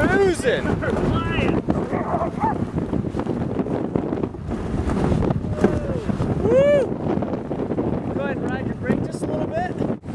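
A sled's runners hiss over snow.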